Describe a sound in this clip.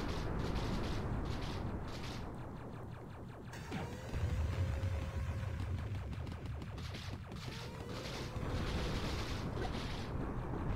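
Video game music plays with a steady beat.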